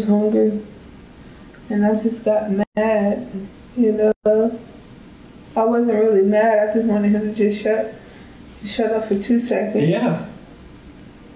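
A woman speaks calmly and slightly distantly, in short bursts with pauses.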